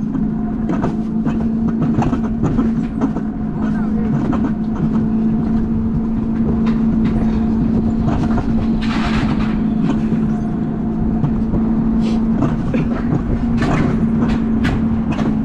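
A steady hum drones from the coaster car.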